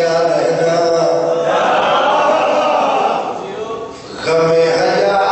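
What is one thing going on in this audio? A man chants loudly and with feeling into a microphone, heard through loudspeakers.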